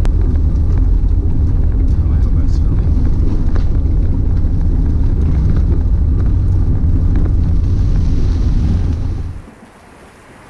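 Strong storm wind roars and buffets the microphone outdoors.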